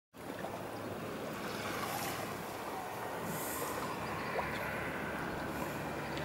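Gentle water laps softly at the shore outdoors.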